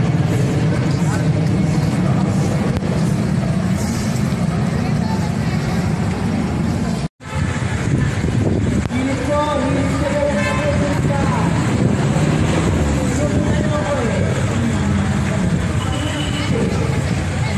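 Traffic rumbles steadily on a busy street outdoors.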